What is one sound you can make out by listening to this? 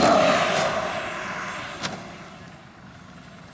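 A model jet engine roars loudly close by and quickly fades away.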